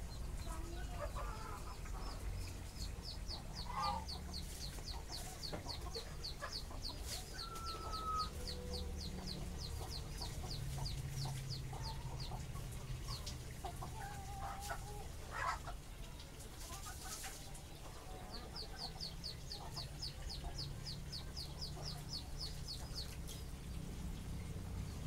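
Rabbits rustle and shuffle in a wire cage.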